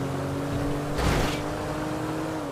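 A large bus rushes past with a brief whoosh.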